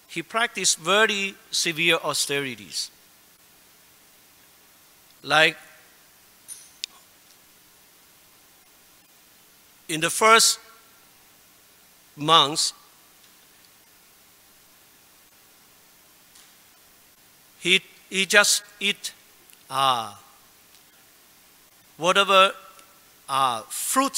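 A man speaks calmly into a microphone, in short phrases with long pauses.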